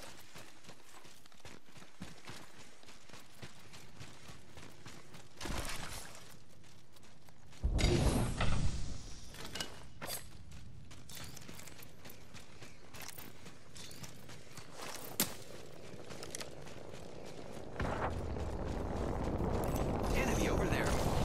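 Footsteps run over rough ground.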